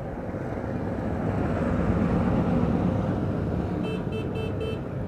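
A diesel locomotive rumbles past close by.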